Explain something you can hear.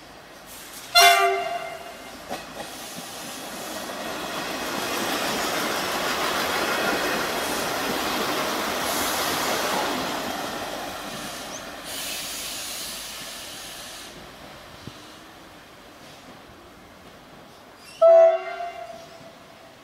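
A train horn sounds loudly in short blasts.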